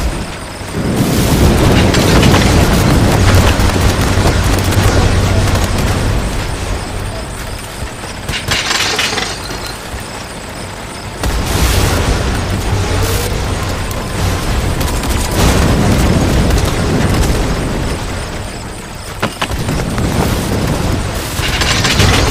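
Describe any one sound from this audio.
Game explosions and gunfire burst loudly again and again.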